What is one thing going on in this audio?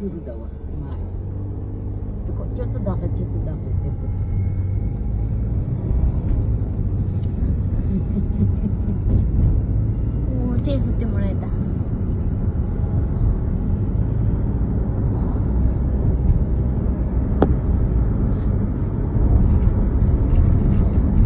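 A car engine hums with a low, steady rumble.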